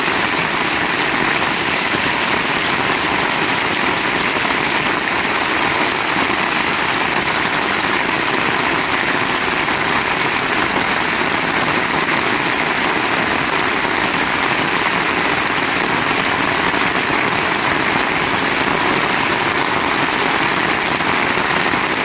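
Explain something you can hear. Steady rain falls on a wet road outdoors.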